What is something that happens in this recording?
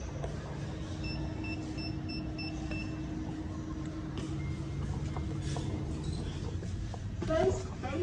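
A service lift car hums as it travels between floors.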